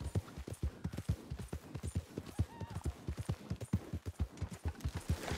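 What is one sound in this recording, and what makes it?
Horse hooves thud rapidly on soft ground at a gallop.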